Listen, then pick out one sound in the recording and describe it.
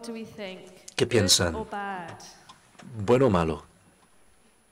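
A woman speaks through a microphone in a large echoing hall.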